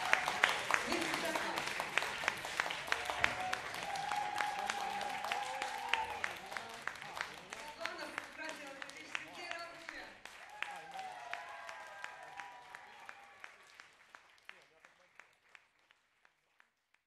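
A live band plays music from a stage, heard from among the audience, and slowly fades out.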